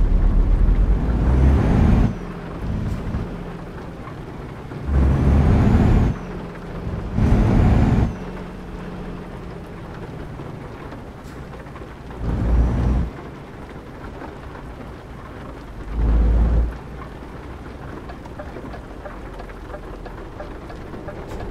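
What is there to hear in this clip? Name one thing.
A truck engine hums steadily at low speed.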